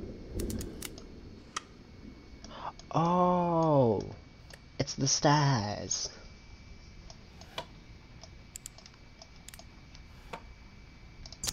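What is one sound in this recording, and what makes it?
Wooden parts click and knock as a small mechanism unfolds.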